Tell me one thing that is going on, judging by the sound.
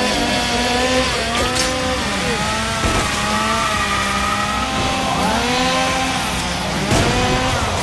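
A blade swishes and strikes with sharp metallic hits.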